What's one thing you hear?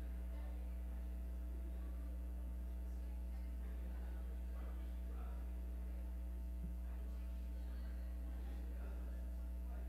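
Men and women murmur quietly in a large echoing hall.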